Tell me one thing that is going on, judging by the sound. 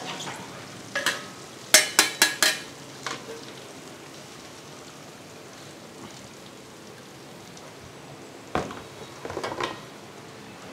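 A metal ladle clanks and scrapes against a wok.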